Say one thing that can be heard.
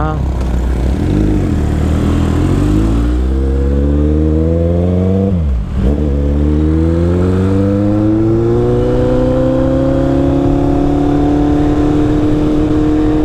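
A motorcycle engine revs up and accelerates, its pitch climbing through the gears.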